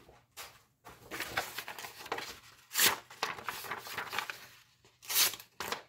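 A knife blade scrapes across stiff paper.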